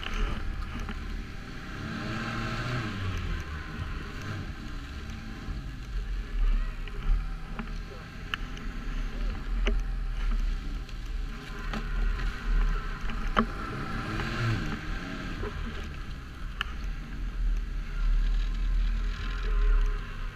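A snowmobile engine drones up close and rises and falls in pitch.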